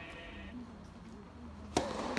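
A tennis racket strikes a ball on a serve.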